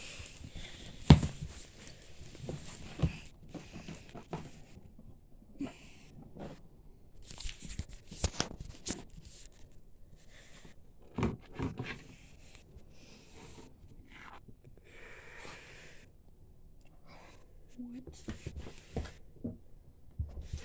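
Soft toys are handled and bump against a wooden floor.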